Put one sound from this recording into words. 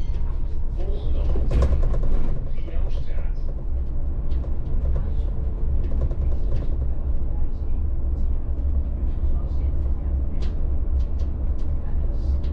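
A bus engine hums steadily as the bus drives along a street.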